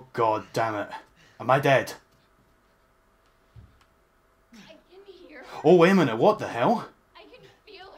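A young man talks and laughs into a headset microphone.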